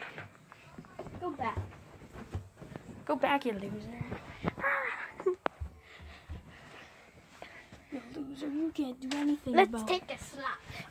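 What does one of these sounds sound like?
A young girl talks and squeals.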